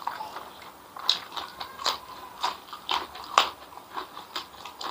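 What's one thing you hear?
A man crunches on raw green vegetables.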